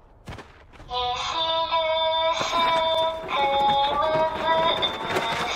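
A girl's voice sings a short, slow chant through a loudspeaker.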